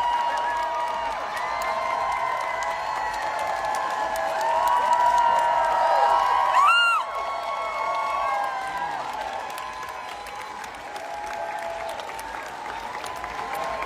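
A crowd of people chatters and cheers loudly.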